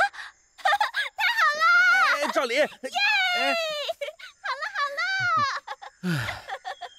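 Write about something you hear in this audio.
A man shouts with joy.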